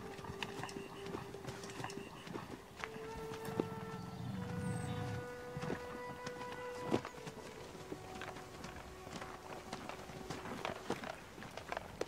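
A camel groans and bellows close by.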